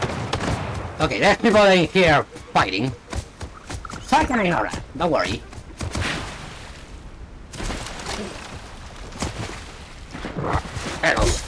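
A person talks with animation into a close microphone.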